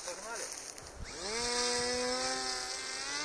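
A small electric propeller motor spins up with a rising whine.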